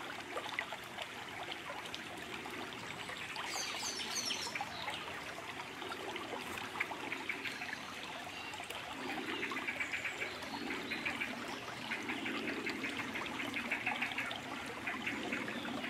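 A shallow stream babbles and gurgles steadily over stones.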